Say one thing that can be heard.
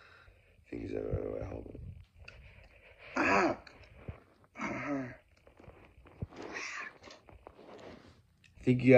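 A young man speaks and groans loudly up close, with animation.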